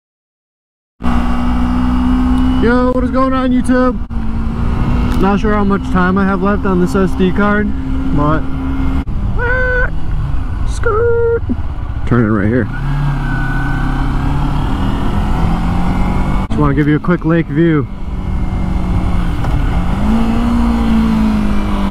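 A motorcycle engine hums and revs as the bike rides along.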